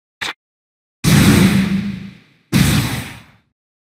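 Heavy impact blasts boom and fade.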